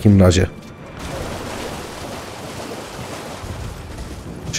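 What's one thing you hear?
A horse splashes through shallow water.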